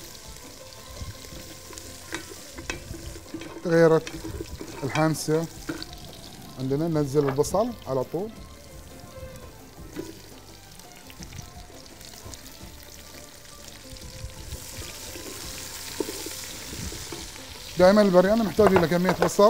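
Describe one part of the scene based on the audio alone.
A wooden spoon stirs and scrapes inside a metal pot.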